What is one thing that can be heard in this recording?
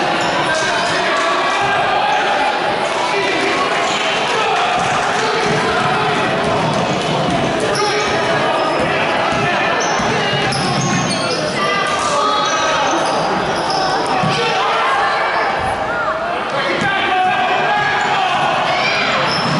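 A crowd of spectators cheers and talks loudly in an echoing gym.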